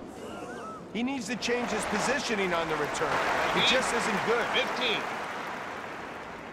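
A crowd cheers and applauds.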